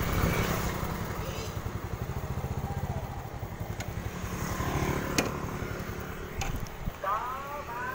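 A motorbike engine idles with a steady low putter.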